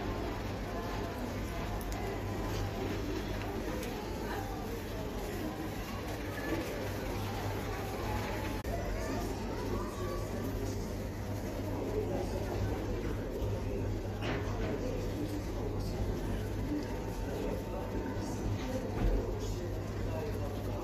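Clothing rustles close by.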